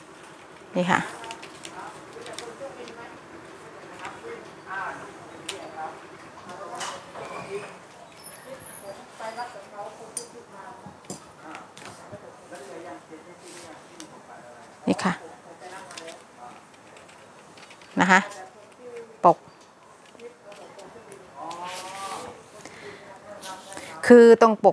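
Paper rustles and crinkles as it is folded and handled.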